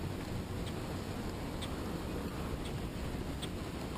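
A fishing reel ticks as line is reeled in.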